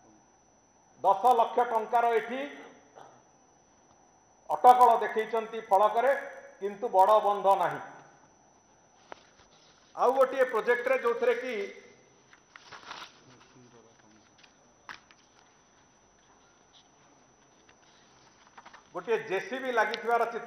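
A man speaks calmly into a microphone, in short bursts with pauses.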